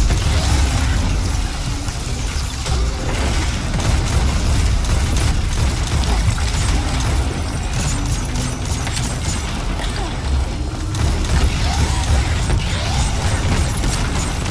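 Game explosions and impact effects boom and crackle.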